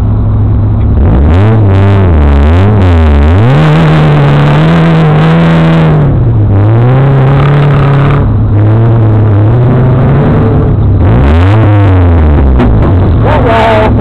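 An off-road buggy engine revs loudly, rising and falling.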